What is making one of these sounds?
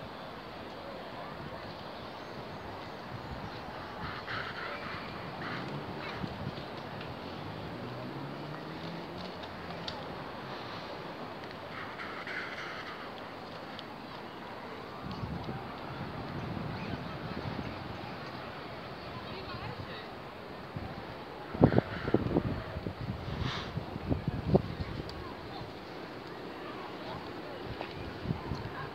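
Waves wash softly onto the shore.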